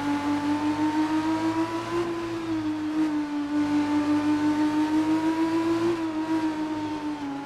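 Tyres hiss on a wet track.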